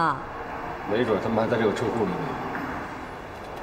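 A young man speaks tensely and close by.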